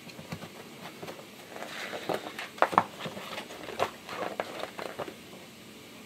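Paper pages rustle and flap as a booklet is leafed through.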